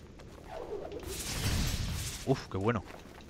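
A crackling burst of electric energy zaps.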